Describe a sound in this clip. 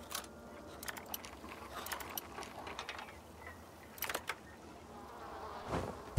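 A lock clicks and rattles as a pick turns in it.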